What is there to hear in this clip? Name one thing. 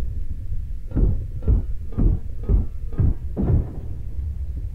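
Rapid muffled knocks sound while scrap is searched through.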